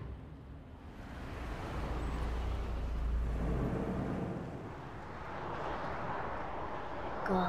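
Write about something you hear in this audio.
A car engine starts and idles, echoing in a large concrete space.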